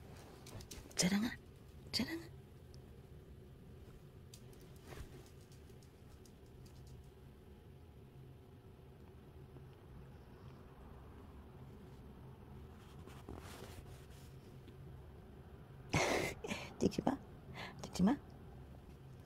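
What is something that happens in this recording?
A kitten mews softly up close.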